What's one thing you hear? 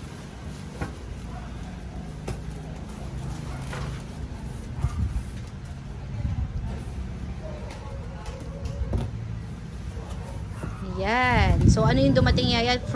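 A cardboard box thumps and scrapes as it is handled.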